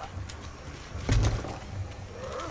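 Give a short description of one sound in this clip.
A wooden chest lid thuds open.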